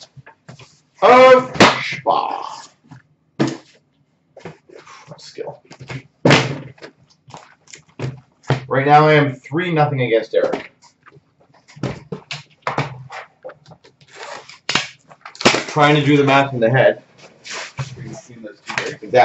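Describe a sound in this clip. Cardboard boxes knock and slide on a glass counter.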